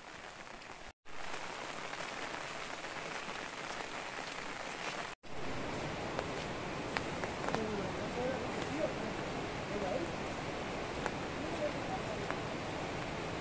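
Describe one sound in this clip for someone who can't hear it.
Footsteps squelch on a muddy path.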